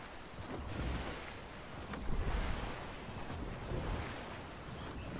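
Water splashes as a game character wades through a shallow stream.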